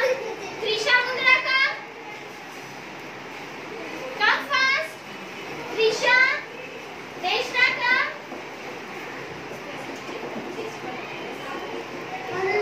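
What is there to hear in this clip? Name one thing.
Children chatter quietly in the background.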